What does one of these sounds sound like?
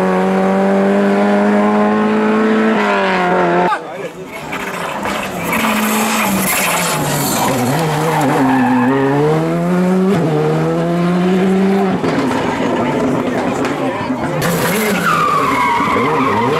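A rally car engine roars and revs hard, rising and falling in pitch as it passes.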